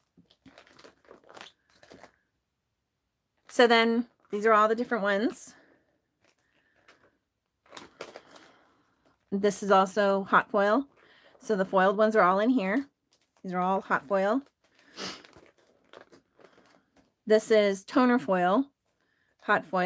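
Plastic sleeves rustle and crinkle as binder pages are turned.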